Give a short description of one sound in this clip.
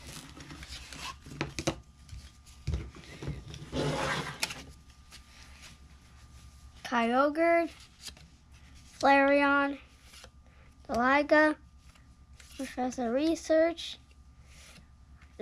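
Playing cards flick and snap as they are handled.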